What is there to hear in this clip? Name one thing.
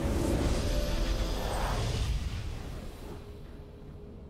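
A loud triumphant game fanfare sounds and quickly fades.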